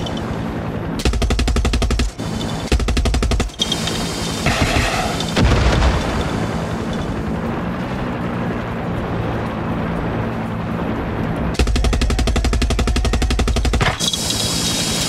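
A helicopter's machine guns fire in rapid bursts.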